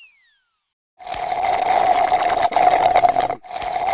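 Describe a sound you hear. A suction tool hisses and gurgles.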